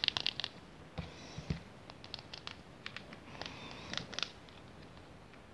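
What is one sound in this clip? A plastic tub rustles as fingers pick it up.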